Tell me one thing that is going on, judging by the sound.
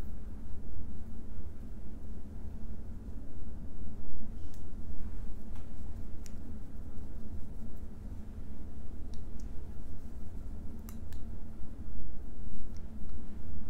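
A brush sweeps softly against skin.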